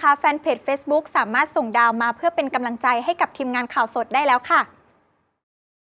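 A young woman speaks clearly and with animation into a close microphone.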